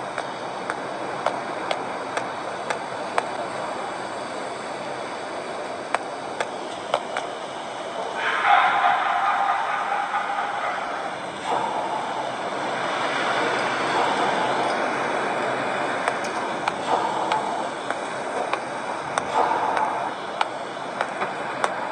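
Fingers tap lightly on a touchscreen.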